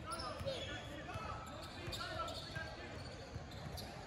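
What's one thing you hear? A basketball bounces on a hardwood floor, echoing in a large hall.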